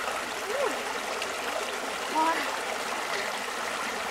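Water drips and splashes back into a stream.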